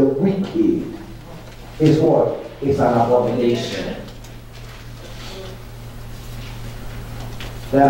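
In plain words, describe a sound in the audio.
A man speaks with animation through a microphone in a room with a slight echo.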